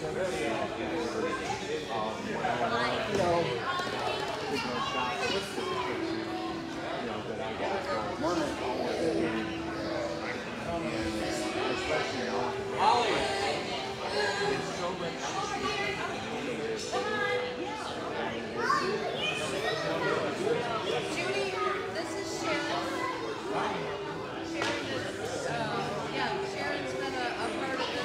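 Many men and women chatter and talk at once in a large echoing hall.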